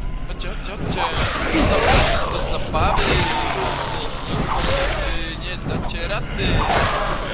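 Heavy blows thud and squelch as a blade strikes bodies.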